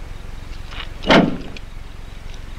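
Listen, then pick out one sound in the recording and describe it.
A car trunk lid slams shut with a heavy thud.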